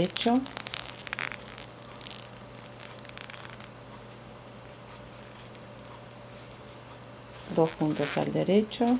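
Knitting needles click and scrape softly against each other.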